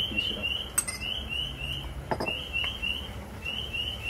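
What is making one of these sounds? Chopped food drops into a pot.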